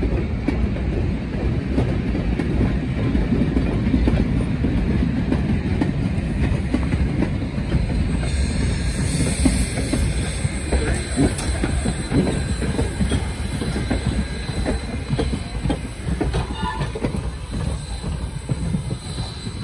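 Train cars rumble and clatter over the rails close by.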